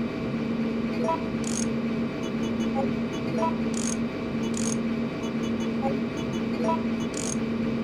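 Short electronic beeps chirp.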